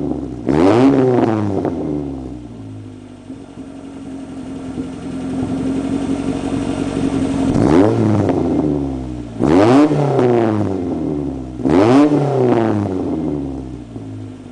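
A car engine revs sharply several times and falls back.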